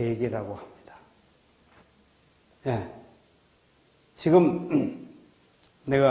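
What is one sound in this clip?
A middle-aged man speaks into a microphone in bursts, with pauses between phrases, in a room with a slight echo.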